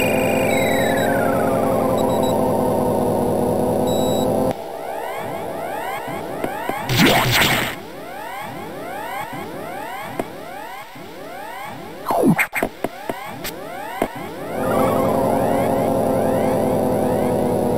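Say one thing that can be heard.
A video game elevator hums with a pulsing, droning tone.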